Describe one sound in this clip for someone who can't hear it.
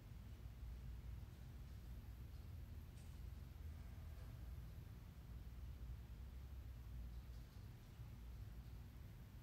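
A ceiling fan hums softly and steadily.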